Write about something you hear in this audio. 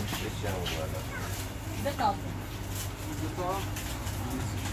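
A man and a woman talk nearby.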